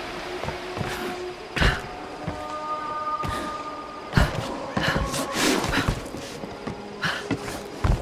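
Hands grip and scrape against a wooden wall while climbing.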